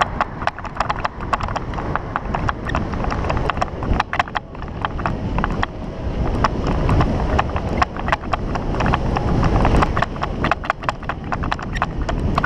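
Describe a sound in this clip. Bicycle tyres crunch and rattle over a bumpy dirt track.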